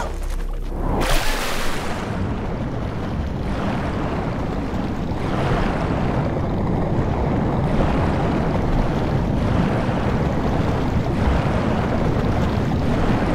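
Water rushes and bubbles in a steady muffled roar.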